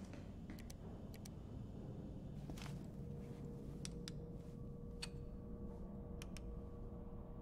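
Buttons on a control panel click several times.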